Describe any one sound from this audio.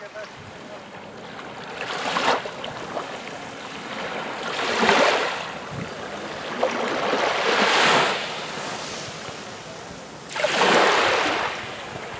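Small waves lap and wash up onto a sandy beach.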